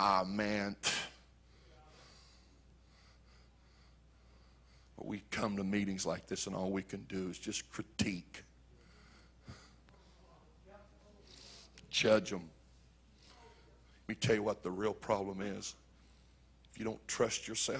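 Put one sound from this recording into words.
A middle-aged man preaches with animation through a microphone, with pauses.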